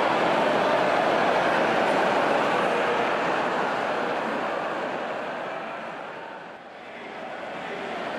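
A large crowd cheers and shouts loudly, the roar slowly fading and then swelling again.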